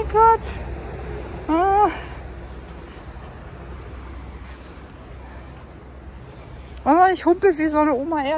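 Footsteps crunch softly in sand.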